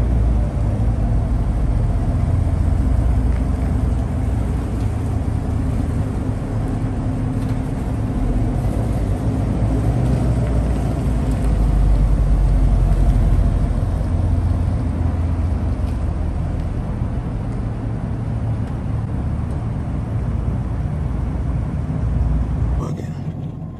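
A car engine idles with a deep, steady rumble, echoing in a large concrete space.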